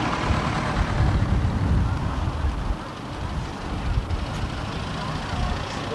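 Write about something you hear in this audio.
A second old car engine rumbles as it drives up close.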